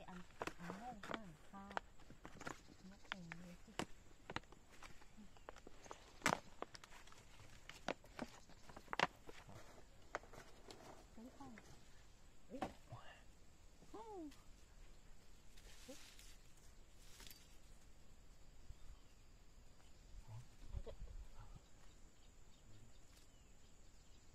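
Hands scrape and pat loose soil.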